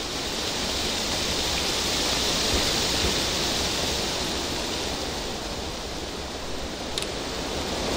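Grass rustles as someone crawls through it.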